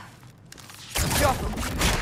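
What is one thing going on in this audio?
A metal blade strikes something hard with a sharp clang.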